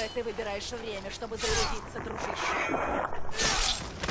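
A blade strikes into a body with a heavy thud.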